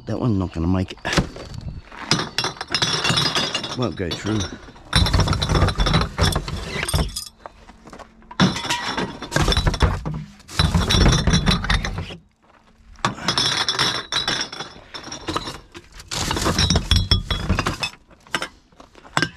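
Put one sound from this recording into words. Glass bottles and metal cans clatter and clink as they are dropped into bins.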